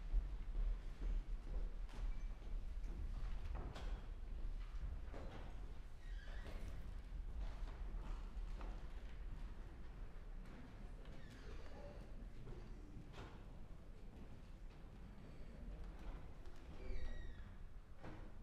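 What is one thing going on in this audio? Footsteps thud on a wooden stage in a large hall.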